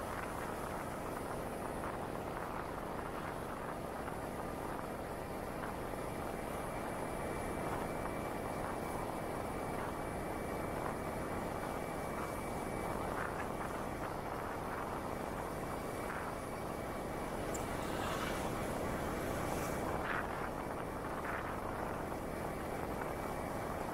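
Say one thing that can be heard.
Wind rushes past loudly and steadily.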